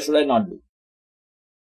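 A middle-aged man speaks briefly and calmly into a close microphone.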